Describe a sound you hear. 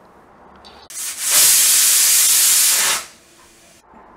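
A pressure cooker whistles loudly, releasing a rush of hissing steam.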